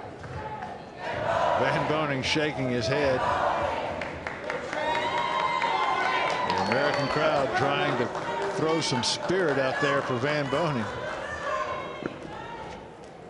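A large crowd chants loudly in an echoing hall.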